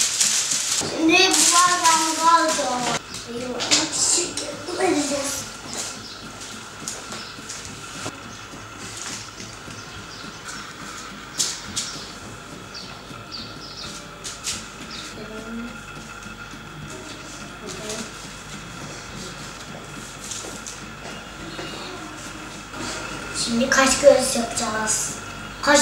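A young boy speaks cheerfully, close by.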